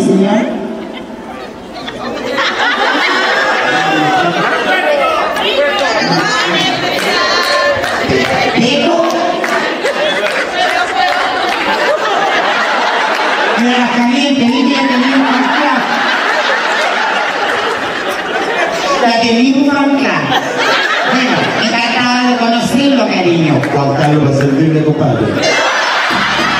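A performer talks animatedly into a microphone over loudspeakers in a large echoing hall.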